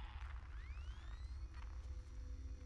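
A motion tracker chirps with rising electronic beeps.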